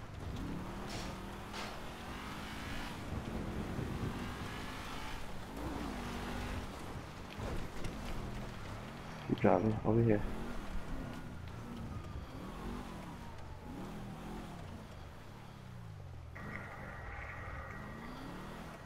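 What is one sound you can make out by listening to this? A sports car engine revs, rising and falling as the car drives.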